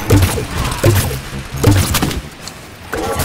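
A blaster fires loud booming shots in quick succession.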